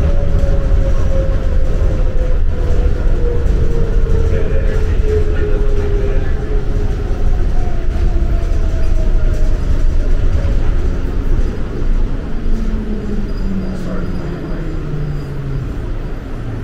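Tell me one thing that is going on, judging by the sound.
A train's motor whines, its pitch slowly falling as the train slows.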